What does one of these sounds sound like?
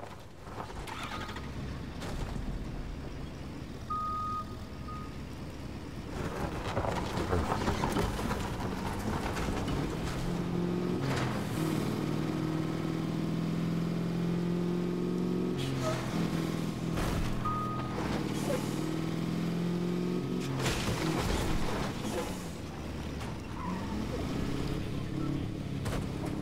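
A truck engine rumbles and revs as it drives.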